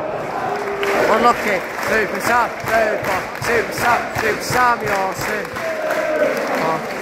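Football fans clap in rhythm.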